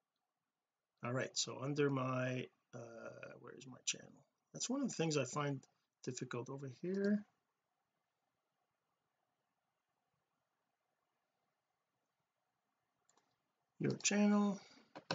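A middle-aged man talks calmly into a microphone, close up.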